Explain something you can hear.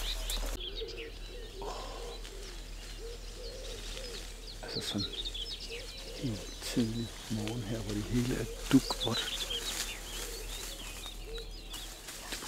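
A middle-aged man speaks calmly and quietly close by.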